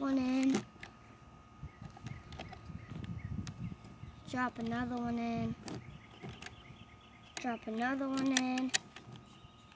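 A young boy speaks softly up close.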